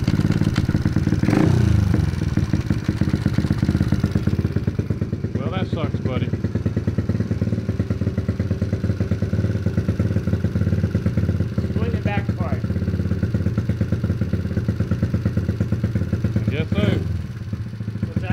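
A small motorbike engine idles with a fast, steady putter close by.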